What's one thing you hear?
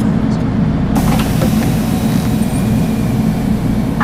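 Bus doors close with a hiss of air.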